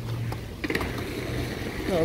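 A skateboard rolls by on pavement.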